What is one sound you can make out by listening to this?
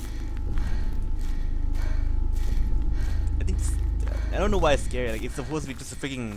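Footsteps crunch on leaves and twigs outdoors.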